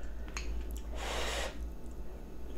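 A woman slurps noodles close by.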